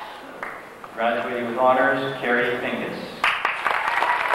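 A man reads out a name through a loudspeaker.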